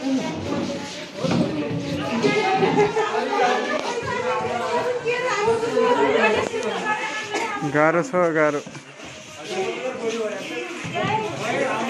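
A crowd of men and women talk and shout loudly close by.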